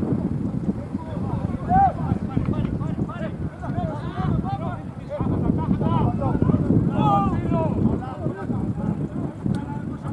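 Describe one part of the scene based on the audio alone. Men shout and call out across an open pitch outdoors.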